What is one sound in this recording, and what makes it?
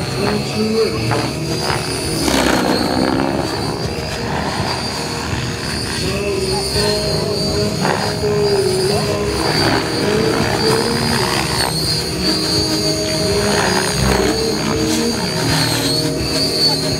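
A model helicopter's engine whines steadily, rising and falling in pitch as it flies.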